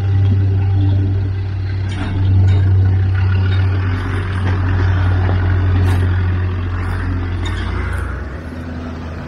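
A four-wheel-drive engine rumbles and labours as it climbs over rock.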